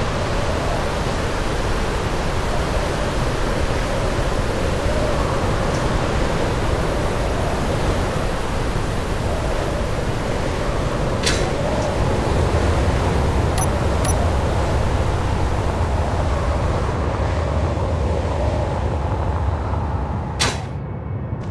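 A flying vehicle's engine roars steadily.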